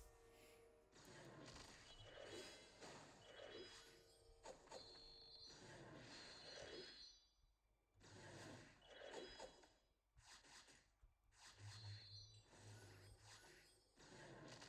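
Magic spells chime and burst in a fantasy battle game.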